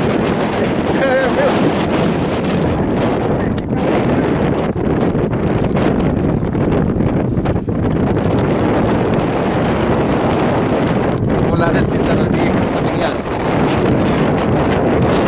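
Small waves lap against a boat.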